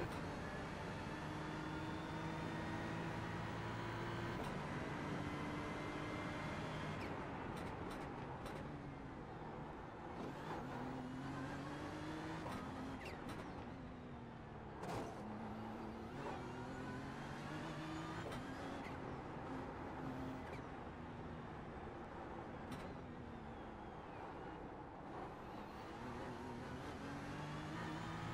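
A race car engine roars loudly, revving up through the gears and dropping with each downshift.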